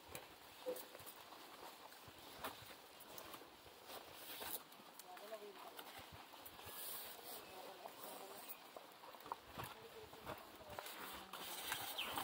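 Palm fronds rustle in a light breeze.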